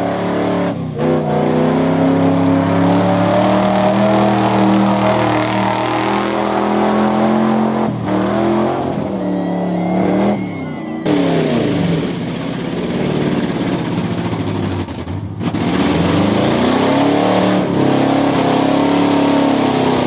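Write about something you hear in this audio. A lifted 4x4 pickup truck engine revs hard, pushing through deep mud.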